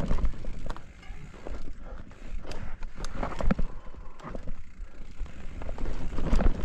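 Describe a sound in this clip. A mountain bike rattles and clatters over roots and rocks.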